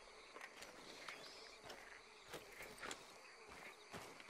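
Footsteps crunch softly on gravel.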